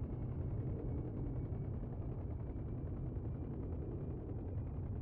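A helicopter's rotor thumps and its engine drones steadily close by.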